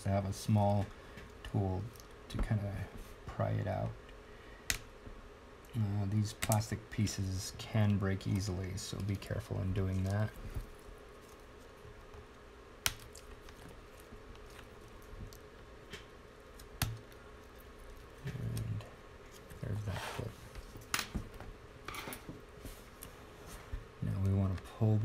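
Small plastic and metal parts click and tap on a hard surface.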